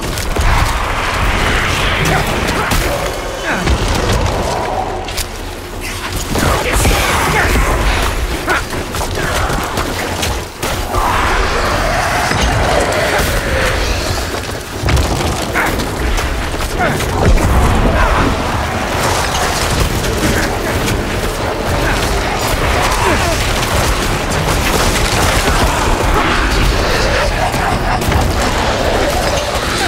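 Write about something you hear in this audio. Weapons clash and spells burst loudly in a fast fight.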